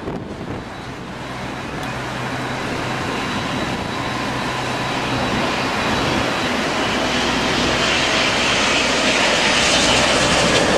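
Jet engines roar and grow louder as an airliner flies close by.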